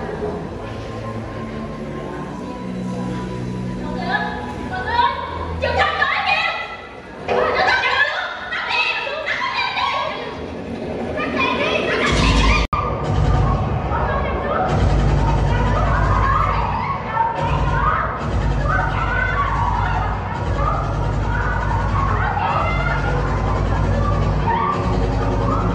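Music plays loudly over loudspeakers in a large hall.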